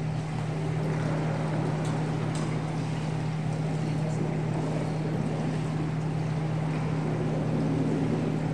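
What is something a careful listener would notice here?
Spectators murmur quietly in a large echoing hall.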